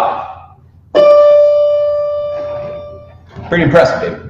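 A piano note rings out and fades.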